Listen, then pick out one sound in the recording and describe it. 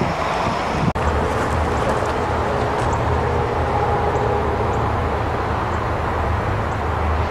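A train rumbles along the tracks in the distance.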